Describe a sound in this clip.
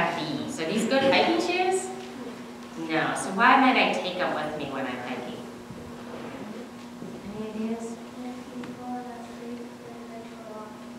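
A woman speaks calmly and warmly in a quiet room.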